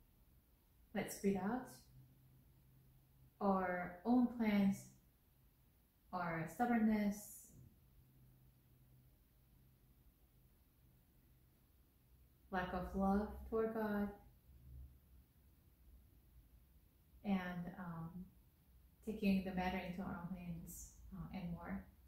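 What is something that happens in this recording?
A woman speaks calmly in short phrases with long pauses, close by.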